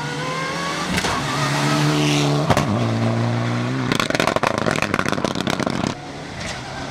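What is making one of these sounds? A rally car engine crackles and pops as the car changes gear.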